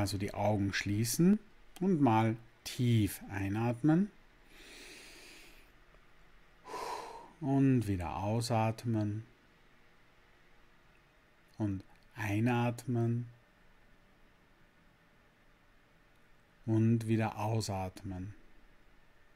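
A middle-aged man speaks calmly in short phrases with pauses, close to a microphone.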